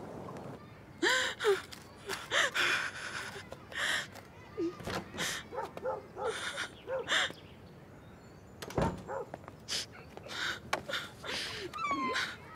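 A young woman speaks tearfully and sobs close by.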